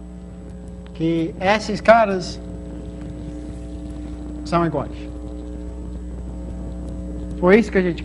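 A man speaks calmly in a room, in short phrases.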